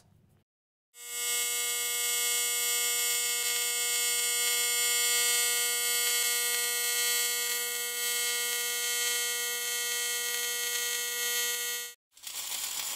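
A welding arc hums with a steady high buzz.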